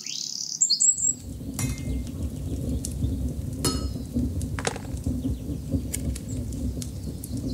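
A fire roars and crackles in a furnace.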